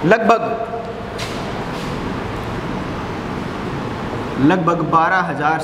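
A man speaks calmly and clearly.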